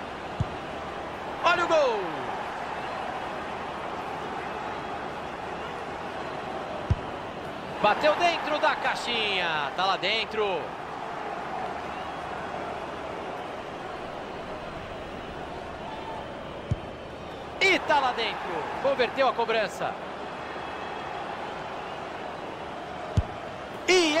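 A ball is kicked hard with a thud.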